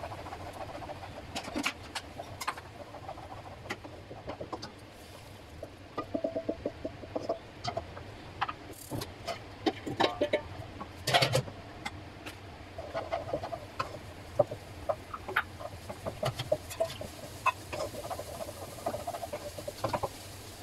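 A wooden spatula scrapes and knocks against a frying pan.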